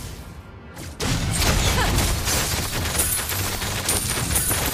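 Game spell effects whoosh and crash during a fight.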